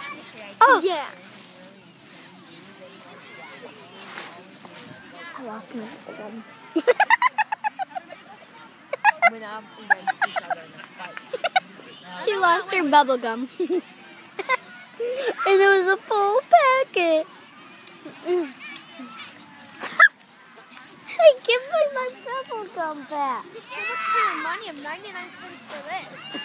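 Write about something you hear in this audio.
Young girls talk and squeal excitedly close by.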